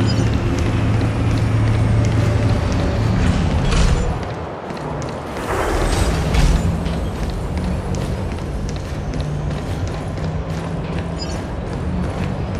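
Quick footsteps run across a hard floor.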